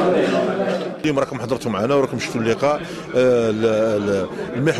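A middle-aged man speaks calmly into microphones.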